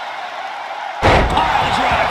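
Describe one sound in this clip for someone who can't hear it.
A heavy body slams onto the wrestling ring mat with a loud thud.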